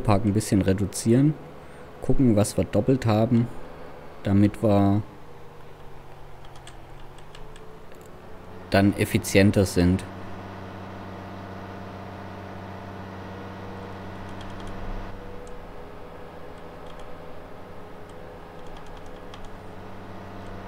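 A tractor engine hums steadily at a low, even pitch.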